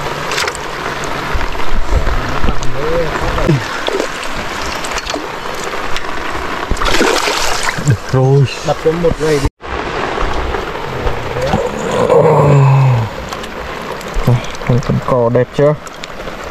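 Rain patters steadily on water outdoors.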